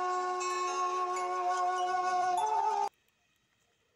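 A group of men sing a hymn together.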